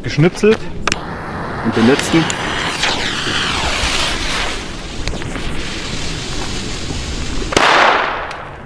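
A firework fuse fizzes and hisses.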